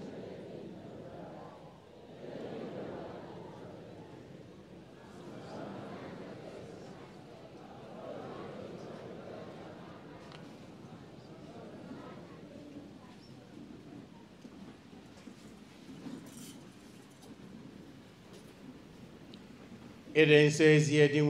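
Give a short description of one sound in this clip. A man speaks faintly through a loudspeaker.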